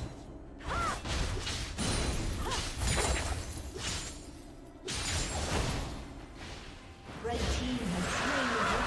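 Game spell effects whoosh, crackle and strike in bursts during a fight.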